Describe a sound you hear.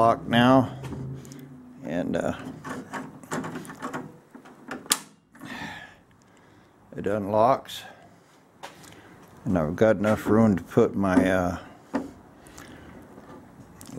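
A metal handle clicks and rattles as a hand turns it.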